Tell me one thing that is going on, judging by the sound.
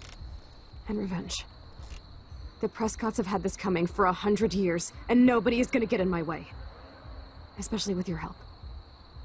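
A second young woman answers in a determined voice.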